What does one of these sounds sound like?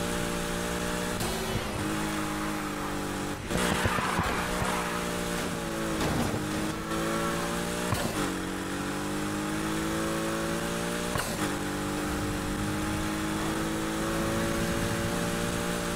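A racing car engine roars steadily, its pitch climbing and dropping sharply with each gear change.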